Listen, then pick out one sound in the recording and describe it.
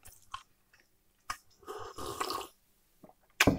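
A man slurps a drink from a cup close to a microphone.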